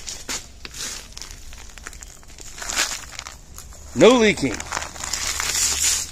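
A paper bag crinkles as a hand handles it.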